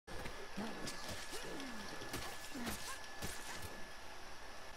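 Heavy footsteps thud on a rocky path.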